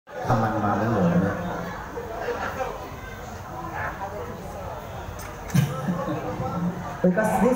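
A woman sings into a microphone over the band.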